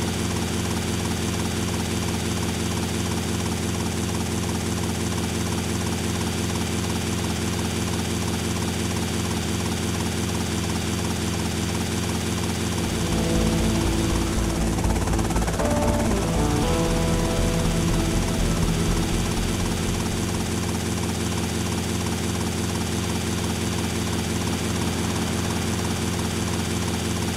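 A helicopter's engine whines steadily.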